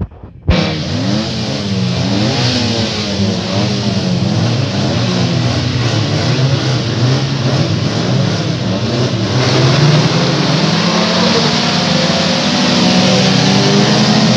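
Tyres skid and spin on loose dirt.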